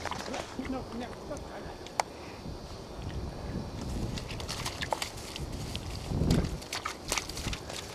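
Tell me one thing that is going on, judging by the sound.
A dog scrabbles and digs in soft, wet earth.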